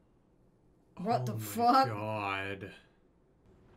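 A man speaks with animated surprise close to a microphone.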